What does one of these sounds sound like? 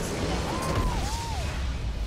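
A structure explodes with a loud blast.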